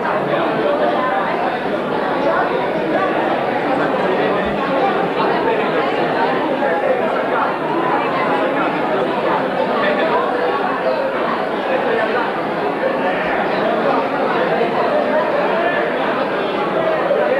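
A crowd of men and women chatter at tables in a busy room.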